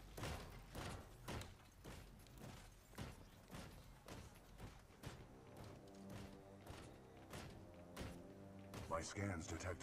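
Heavy metal footsteps of a giant robot thud nearby.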